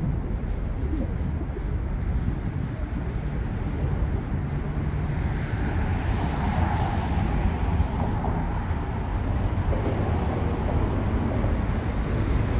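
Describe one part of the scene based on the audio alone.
Wind buffets and rumbles steadily outdoors.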